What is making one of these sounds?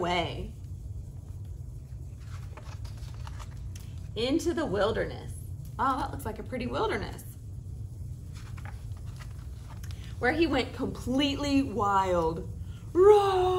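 A young woman reads aloud with animation, close by.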